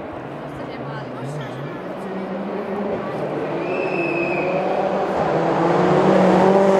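A rally car engine roars and grows louder as the car approaches at speed.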